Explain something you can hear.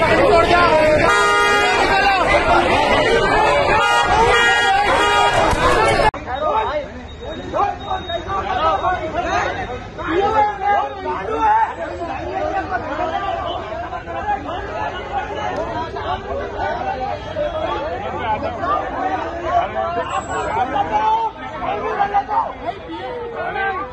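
A crowd of men shout and argue loudly outdoors.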